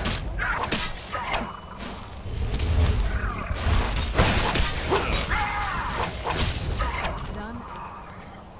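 A monster grunts and cries out in pain.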